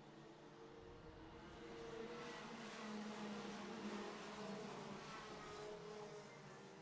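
Kart engines buzz and whine as karts race past.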